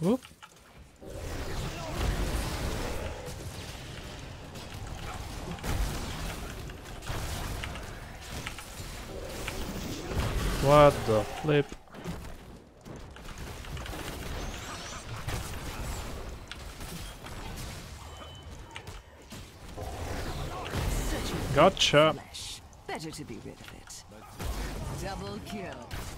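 Game battle effects clash and boom.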